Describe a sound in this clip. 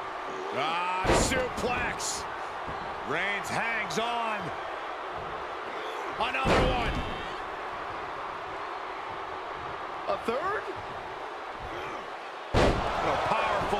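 Bodies slam hard onto a wrestling mat with heavy thuds.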